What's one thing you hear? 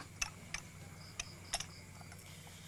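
Glasses clink together as they are handed over.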